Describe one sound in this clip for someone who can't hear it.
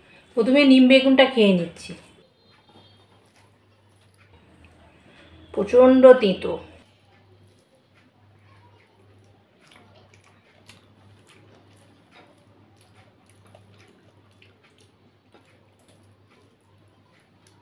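Fingers squish and mix rice softly.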